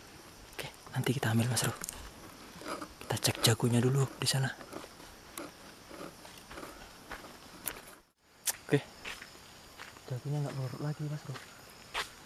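Footsteps crunch through dry leaves and undergrowth.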